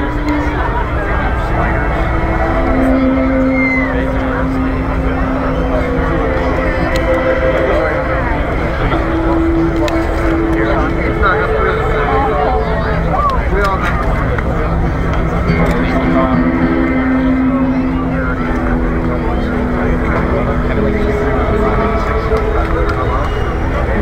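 A band plays live music loudly through loudspeakers outdoors.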